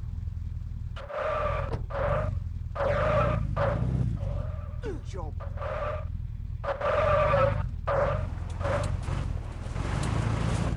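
Car tyres screech in repeated bursts.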